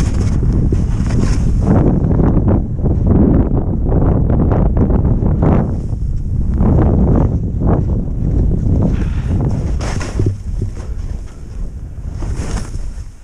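Wind rumbles loudly past the microphone.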